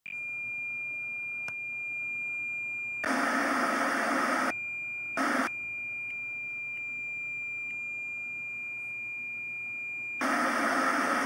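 A steady high test tone beeps.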